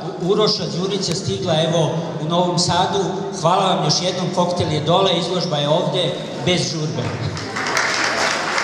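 A man speaks into a microphone through a loudspeaker in a large echoing hall.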